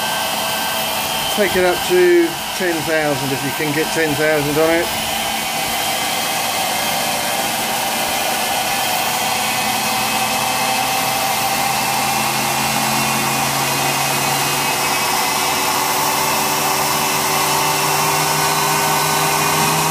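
A machine motor hums steadily close by.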